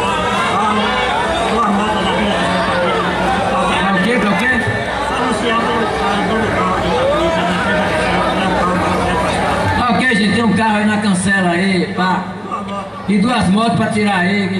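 An older man talks close by.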